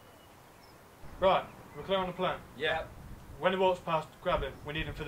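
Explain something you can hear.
A man speaks firmly up close.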